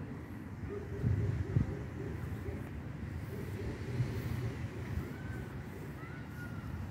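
Footsteps thud softly on grass close by.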